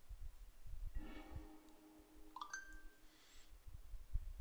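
A computer card game plays a soft chime as cards are revealed.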